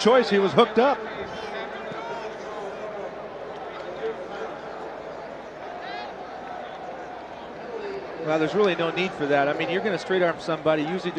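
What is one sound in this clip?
A large crowd cheers and roars in an open stadium.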